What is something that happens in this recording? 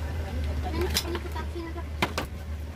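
A utensil clinks against a metal counter.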